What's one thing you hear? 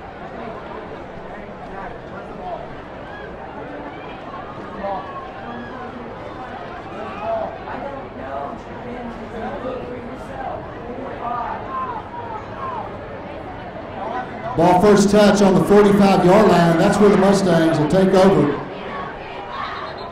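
A large crowd chatters in the open air.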